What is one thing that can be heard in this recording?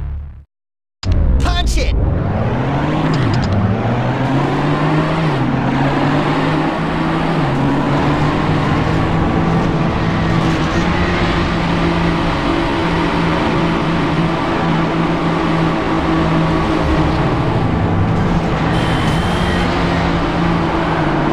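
A racing car engine roars and revs steadily.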